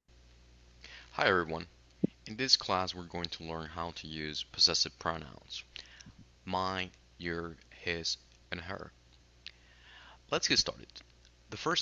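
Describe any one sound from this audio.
A young man speaks with animation through a headset microphone.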